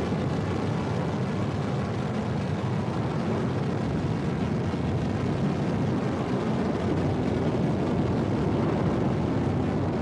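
A spaceship engine roars with a steady, low rushing hum.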